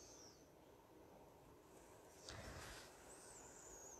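A board scrapes softly as it slides across a tabletop.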